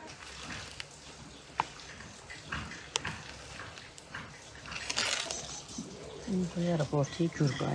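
Wet fruit squelches as it is stirred.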